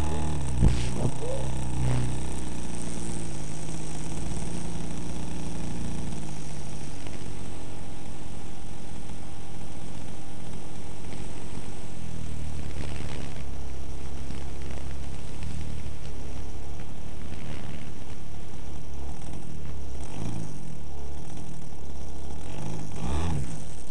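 A small aircraft engine drones steadily, its pitch rising and falling.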